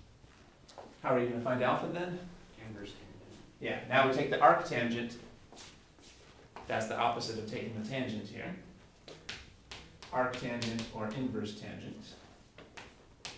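A man lectures calmly, heard close by.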